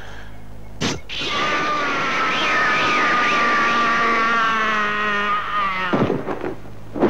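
A man screams in agony, long and wavering.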